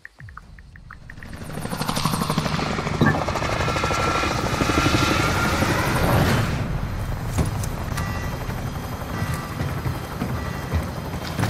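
Helicopter rotors thump loudly overhead.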